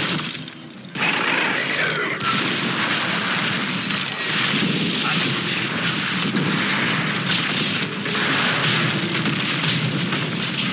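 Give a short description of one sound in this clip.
Spells and blows clash loudly in a fight.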